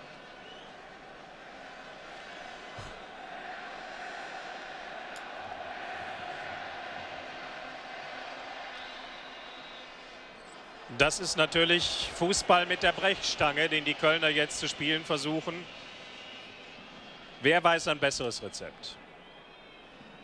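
A large crowd murmurs and roars in an open stadium.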